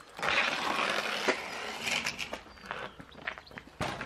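A bicycle rattles as it is wheeled.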